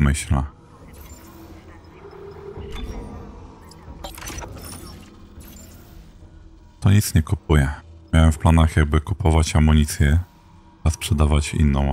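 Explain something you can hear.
Soft electronic clicks and blips sound as menu items are selected.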